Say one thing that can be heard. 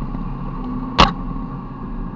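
A vehicle's body thumps sharply over a bump.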